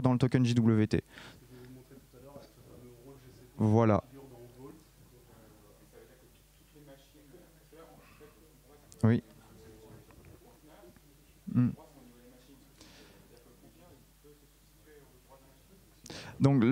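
A second man speaks quietly further away.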